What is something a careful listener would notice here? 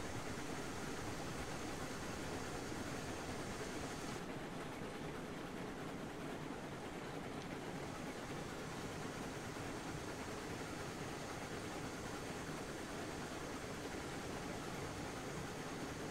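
A small steam locomotive chugs steadily along the rails.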